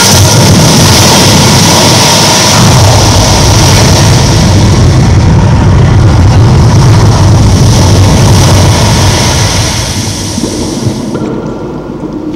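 Loud music with a booming beat plays outdoors and then fades away.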